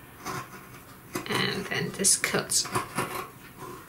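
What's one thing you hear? Scissors snip through thick felt.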